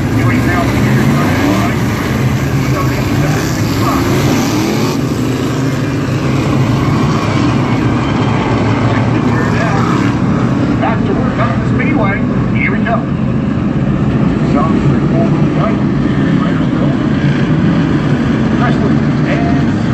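Many race car engines roar loudly, outdoors.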